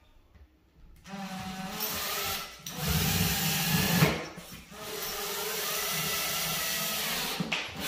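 A cordless drill whirs in bursts.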